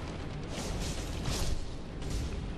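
A sword strikes stone with a metallic clang.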